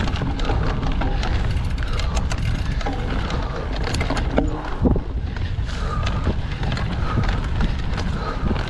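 A bicycle chain and frame rattle over bumps.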